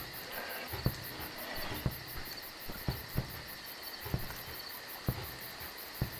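Footsteps thud on wet ground at an even pace.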